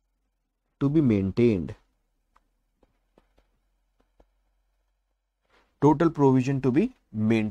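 A man speaks clearly and with animation, close to a microphone.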